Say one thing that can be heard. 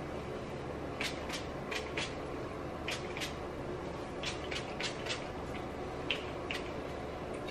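Hairspray hisses from a can in short bursts.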